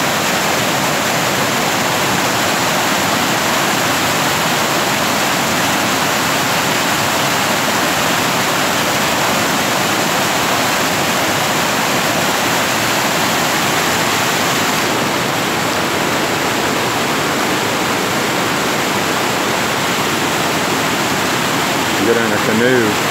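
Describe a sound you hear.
Floodwater rushes and roars loudly and steadily over a road.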